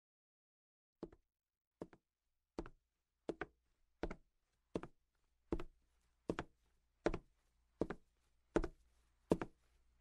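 Footsteps tap steadily on a hard floor, coming closer.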